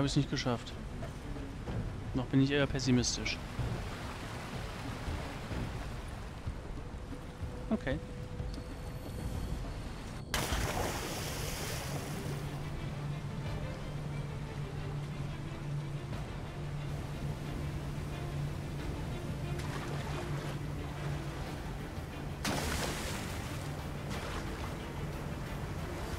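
Water flows and splashes steadily in an echoing cave.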